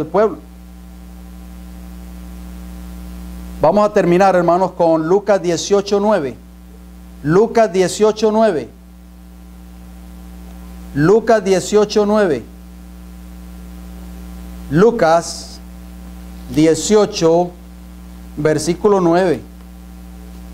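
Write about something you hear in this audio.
A middle-aged man speaks calmly into a microphone in short phrases, with pauses between them.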